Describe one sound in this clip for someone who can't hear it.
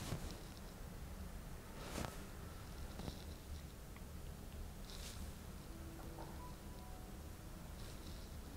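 Hands press and rub softly on a towel.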